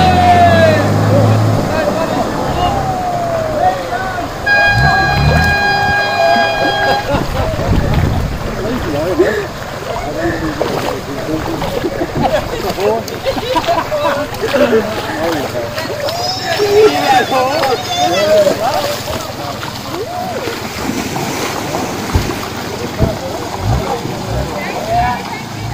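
A truck engine revs as the truck drives through water.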